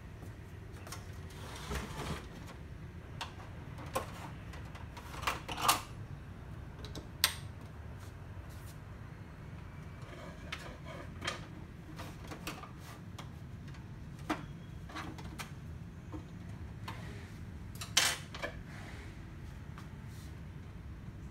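Plastic parts of a printer click and knock as hands handle it.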